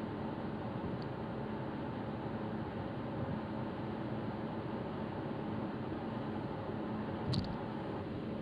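A car engine hums steadily with road noise from the tyres inside a moving car.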